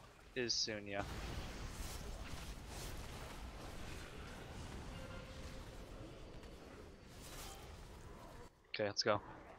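Magic spell effects crackle and whoosh.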